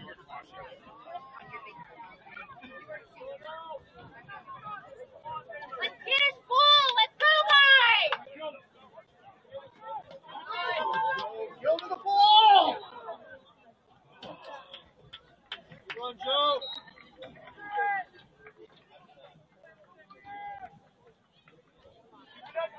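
A crowd of spectators chatters nearby outdoors.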